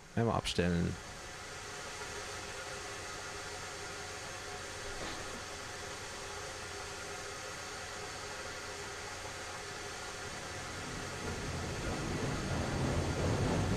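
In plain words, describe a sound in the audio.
A steam locomotive hisses and rumbles steadily, growing louder toward the end.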